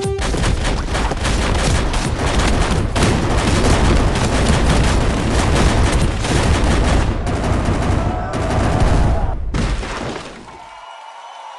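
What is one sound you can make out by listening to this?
A crowd of small figures clashes in a dense, noisy scuffle.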